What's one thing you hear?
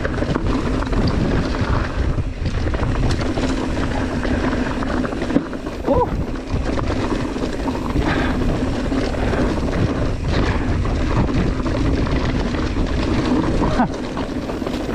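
Wind rushes loudly past close by, outdoors.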